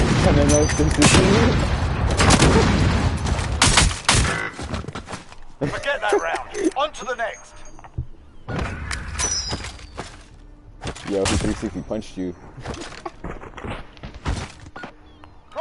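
Gunshots crack sharply, one after another.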